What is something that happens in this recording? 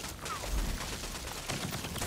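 Fire roars from an explosion.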